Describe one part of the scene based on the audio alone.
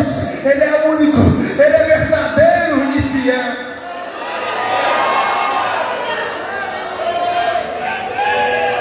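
A young man sings into a microphone through loudspeakers in a large open space.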